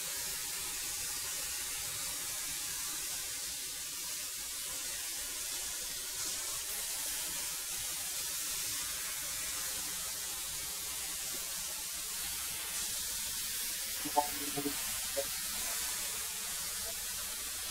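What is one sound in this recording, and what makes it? A thickness planer roars steadily as boards feed through it.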